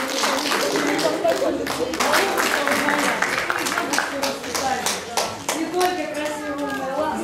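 An elderly woman speaks warmly to the room.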